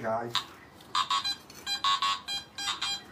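A metal detector beeps in quick bursts.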